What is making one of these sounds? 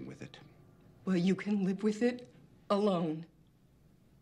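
A young woman answers in a low, tense voice.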